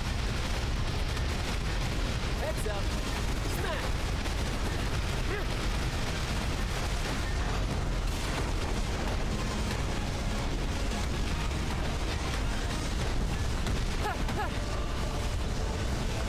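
Game skill effects burst and crackle with rapid blasts.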